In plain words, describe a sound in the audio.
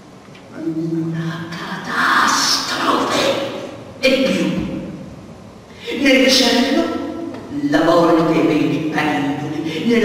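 An elderly man speaks with animation into a microphone, heard through loudspeakers in a large echoing hall.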